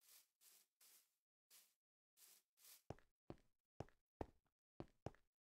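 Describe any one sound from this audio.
Footsteps crunch on grass and then clack on stone at a steady walking pace.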